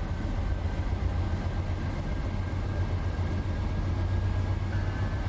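A locomotive engine rumbles steadily as a train rolls slowly along the track.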